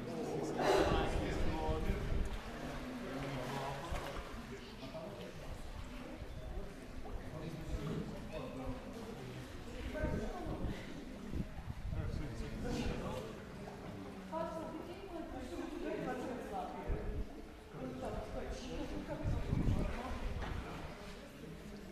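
Voices of men and women chatter and echo in a large stone hall.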